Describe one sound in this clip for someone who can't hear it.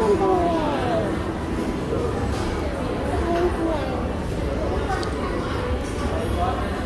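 Voices murmur and chatter in a large indoor hall.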